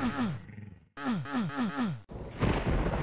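A pistol fires several shots in quick succession, each echoing.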